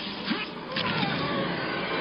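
A middle-aged man laughs loudly.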